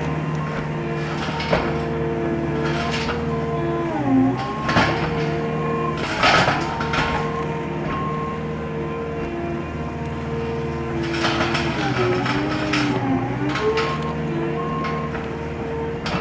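A diesel engine runs loudly and steadily, dipping in pitch as it works.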